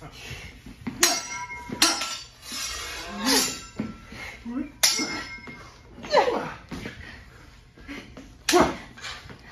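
Wooden practice swords clack together sharply in an echoing room.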